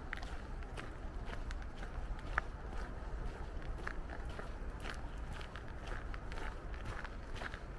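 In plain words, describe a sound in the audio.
Footsteps crunch steadily on a gravel path.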